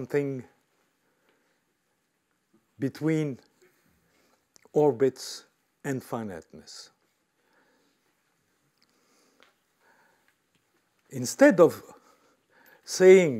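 An elderly man speaks calmly in short bursts through a microphone.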